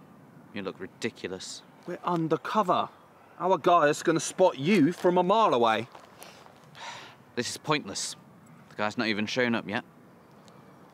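A young man speaks calmly, close by.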